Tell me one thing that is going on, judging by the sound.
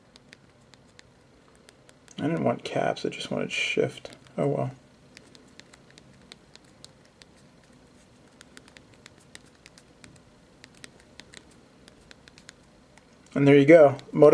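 Keys click softly as thumbs type on a small keyboard.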